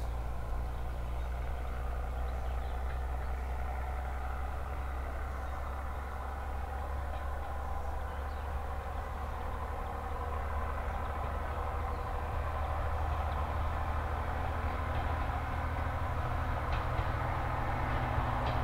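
Train wheels click and rattle over the rails.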